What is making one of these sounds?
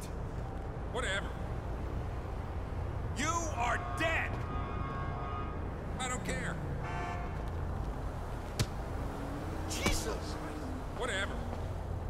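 A man shouts angrily nearby.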